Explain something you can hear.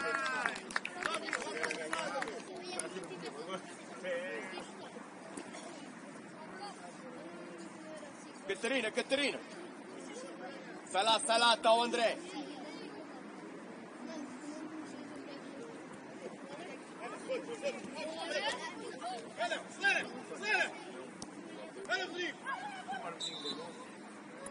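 Young players shout to each other across an open pitch outdoors.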